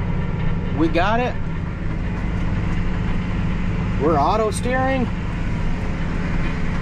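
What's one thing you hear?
A tractor engine rumbles steadily inside a cab.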